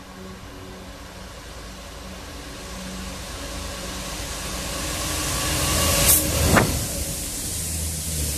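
A Class 66 diesel locomotive approaches, growing louder, and roars past beneath.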